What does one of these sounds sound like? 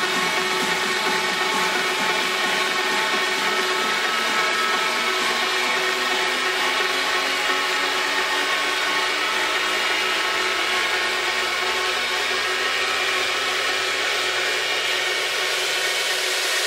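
Loud electronic dance music plays through speakers, with a low tone slowly rising near the end.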